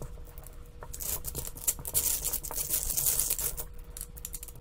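Plastic tiles rattle as they are slid across a table.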